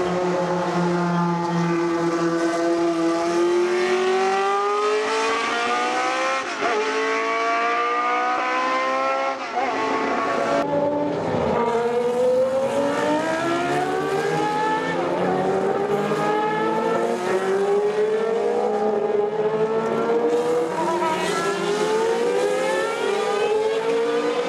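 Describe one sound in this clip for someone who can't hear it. Racing car engines scream at high revs, rising and falling as they shift gears.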